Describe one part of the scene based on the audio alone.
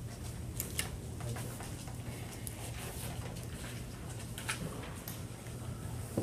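Footsteps cross the room.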